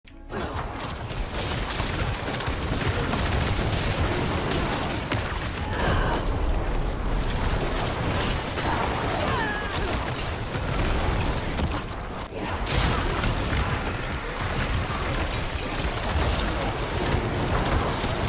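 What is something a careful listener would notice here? Magic blasts and hits crash and crackle in quick succession.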